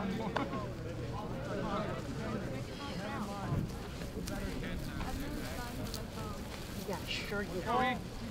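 Young men call out and chatter outdoors across an open field.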